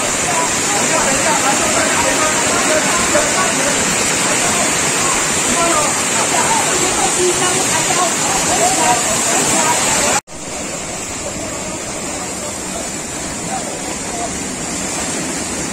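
A stream rushes over rocks.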